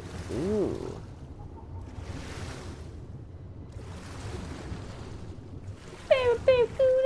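Muffled water swooshes as a swimmer moves underwater.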